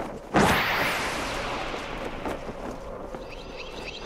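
Wind rushes past in a loud whoosh.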